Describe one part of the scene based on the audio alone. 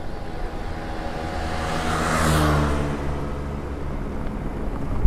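A motorcycle engine hums by, growing louder and then fading.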